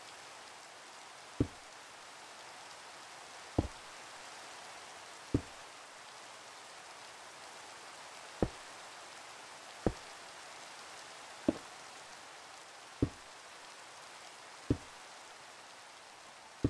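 Rain patters and hisses steadily.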